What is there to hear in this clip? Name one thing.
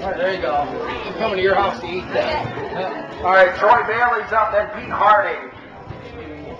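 A man reads out loudly through a megaphone.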